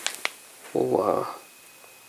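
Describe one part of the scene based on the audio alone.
A thin plastic sheet clicks and rattles as a hand moves it.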